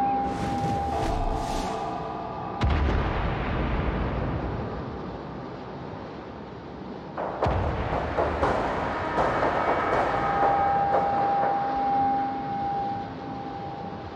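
Sea water rushes and splashes against a ship's hull.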